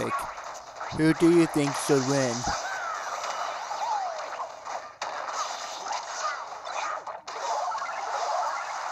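Video game fighters land quick thumps and smacks.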